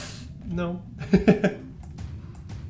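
A young man laughs out loud.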